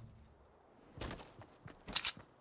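Footsteps patter over the ground.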